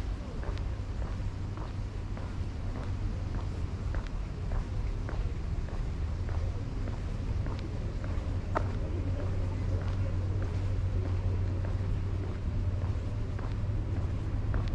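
Footsteps walk steadily on a paved path.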